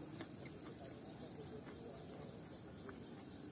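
Fingers squish and rustle through food on a leaf.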